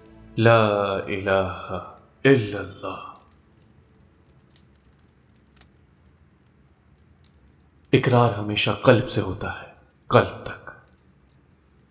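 A young man speaks softly and close by, with pauses.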